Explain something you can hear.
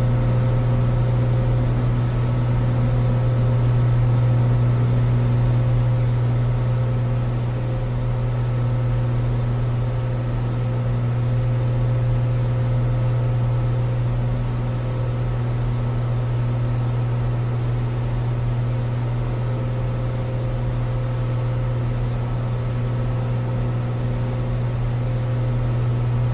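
Wind rushes past a small plane.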